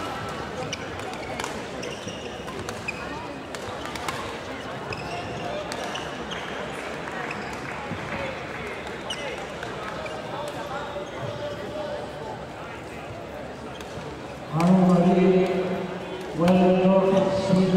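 Rackets strike a shuttlecock with sharp, light pops, echoing in a large hall.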